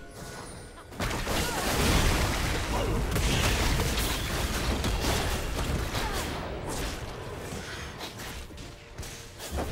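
Magic spells burst and crackle in a busy fight.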